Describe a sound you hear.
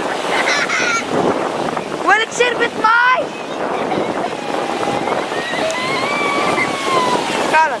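Children shout and laugh in the water.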